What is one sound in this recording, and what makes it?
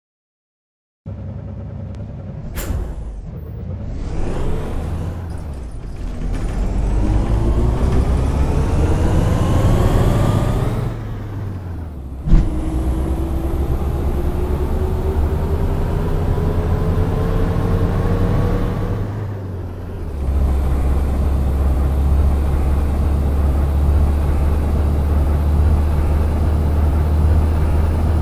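A bus engine hums and rises in pitch as the bus speeds up, then drops as gears change.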